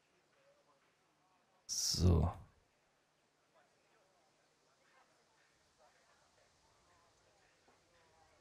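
A man talks quietly and close to a microphone.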